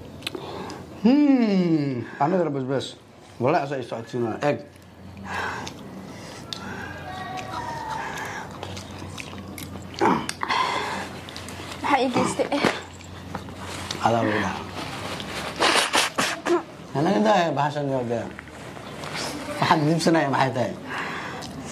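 A young woman cries out and groans loudly.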